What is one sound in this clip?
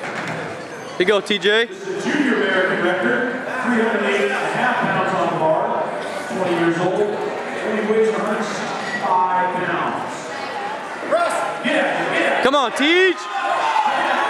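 Men shout loud encouragement.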